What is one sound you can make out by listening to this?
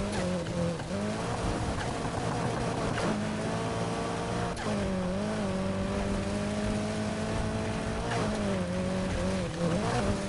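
Tyres skid and crunch on loose dirt.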